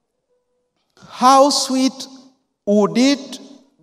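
A man preaches forcefully into a microphone.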